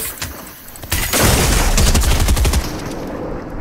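A shot bursts with a loud, rumbling blast.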